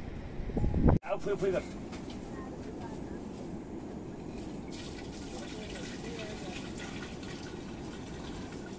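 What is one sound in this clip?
Liquid pours into a plastic bucket.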